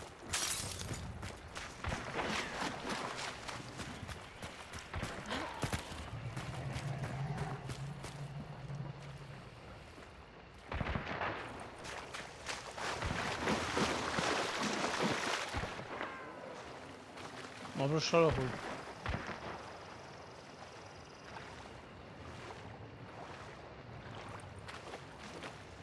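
Footsteps splash and wade through shallow water.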